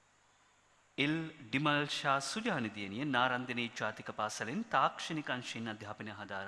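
A young man speaks steadily into a microphone over a loudspeaker.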